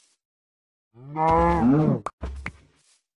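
A cow moos nearby.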